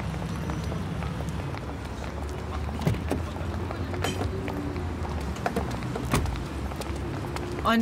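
High heels click on paving stones.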